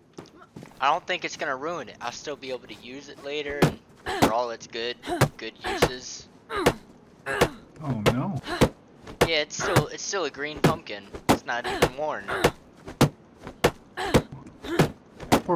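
A pumpkin knocks repeatedly against a wooden door.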